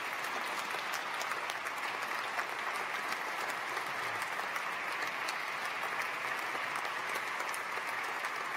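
A crowd applauds steadily in a large echoing hall.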